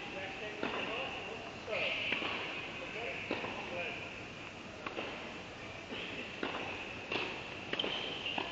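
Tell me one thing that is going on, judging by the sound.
Tennis balls are struck with rackets, echoing in a large indoor hall.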